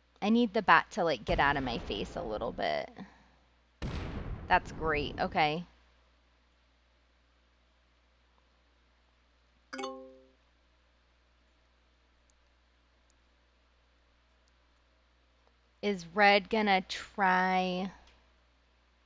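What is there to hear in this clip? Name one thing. A woman speaks casually and close to a microphone.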